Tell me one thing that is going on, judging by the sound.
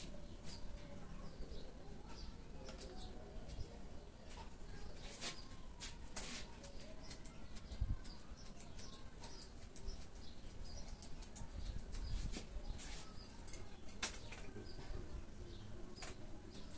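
Scissors snip close by in quick, sharp clicks.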